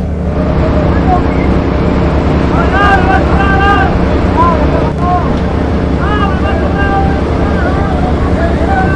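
A ship's machinery rumbles and drones steadily.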